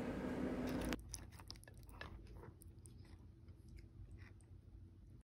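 A fork scrapes and clicks softly against cooked squash.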